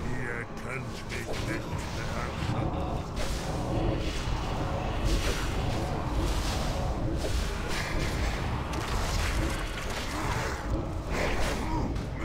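Swords clash and magic blasts crackle in a fight.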